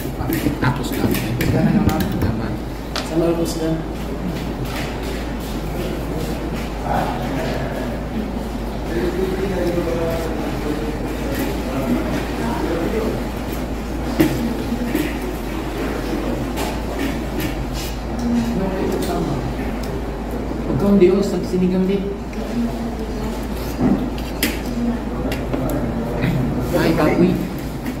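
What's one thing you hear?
A young man talks in reply.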